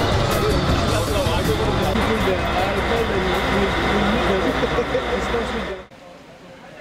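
A crowd of people chatters loudly.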